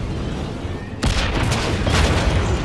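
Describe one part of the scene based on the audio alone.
Heavy blows and crashes ring out in a fight.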